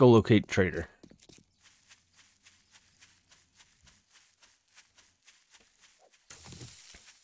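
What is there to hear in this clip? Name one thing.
Footsteps rustle through grass at a steady pace.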